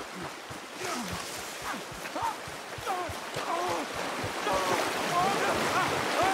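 A stream rushes over rocks.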